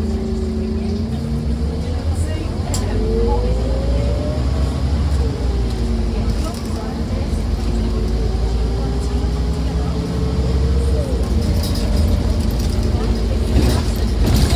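A bus engine revs and whines as the bus speeds up.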